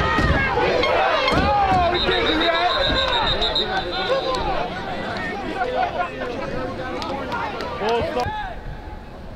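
A crowd of spectators cheers and shouts excitedly outdoors.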